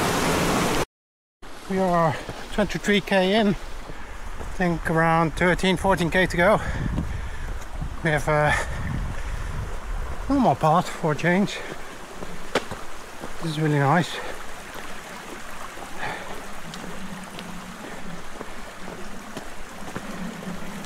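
Footsteps crunch on a dirt track.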